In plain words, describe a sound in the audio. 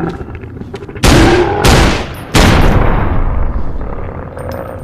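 A monster lets out loud, snarling roars.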